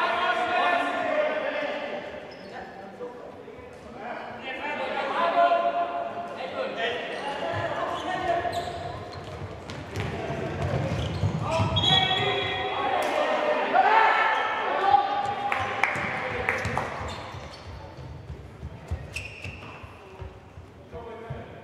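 A ball thuds as players kick it across a hard indoor court.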